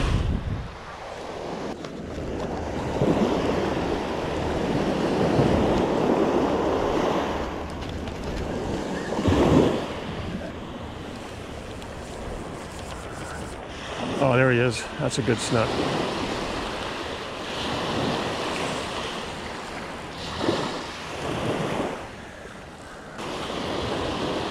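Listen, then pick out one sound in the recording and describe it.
Waves wash onto the sand and break gently.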